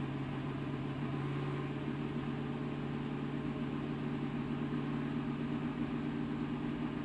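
Wind rushes past a speeding car.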